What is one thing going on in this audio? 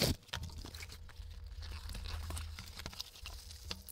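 A cardboard box flap scrapes and thumps as it is opened.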